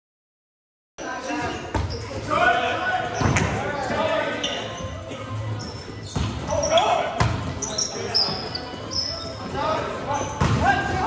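A volleyball is struck with sharp slaps in an echoing gym.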